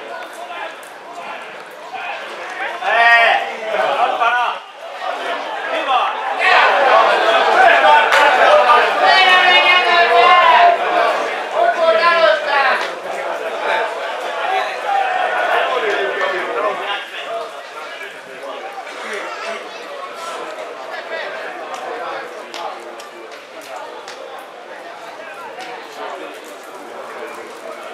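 Spectators cheer and shout loudly outdoors, then quiet down.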